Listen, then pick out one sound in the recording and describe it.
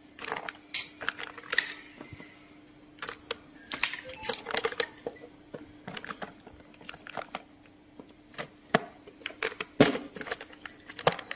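Wax crayons clatter and click as they are set down on a table.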